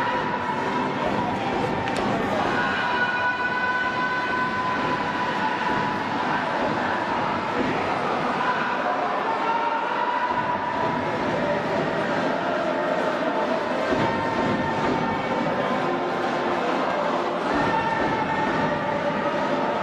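A large crowd cheers and chants loudly in a stadium.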